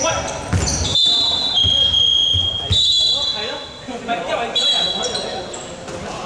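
Sneakers squeak sharply on a hard floor.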